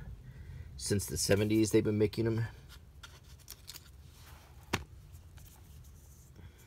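Paper pages rustle as a booklet is handled.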